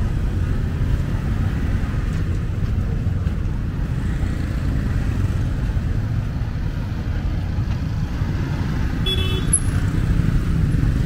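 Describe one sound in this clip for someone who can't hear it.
Motorbikes buzz past close by.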